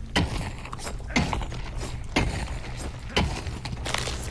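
A tool strikes rock with sharp, regular cracking blows.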